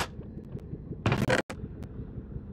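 A chest creaks open.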